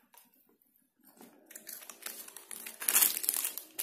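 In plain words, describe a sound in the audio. A paper bag rustles under a hand.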